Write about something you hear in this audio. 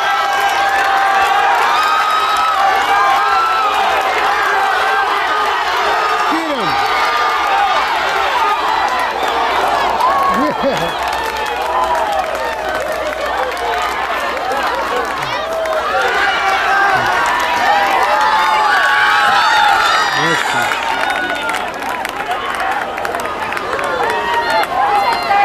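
A large crowd outdoors cheers and shouts loudly.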